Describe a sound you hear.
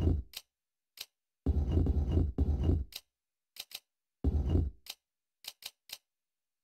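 Menu selections click sharply.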